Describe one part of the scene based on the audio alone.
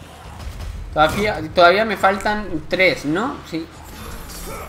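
A man roars and grunts in pain.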